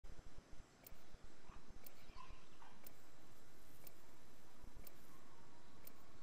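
A countdown timer ticks once every second.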